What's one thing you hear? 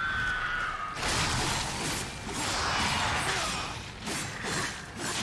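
A blade slashes and clangs against a huge beast.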